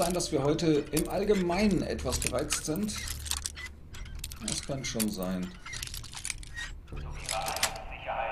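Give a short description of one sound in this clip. A metal pin scrapes and clicks inside a lock.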